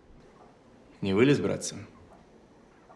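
A man asks a question in a low, firm voice.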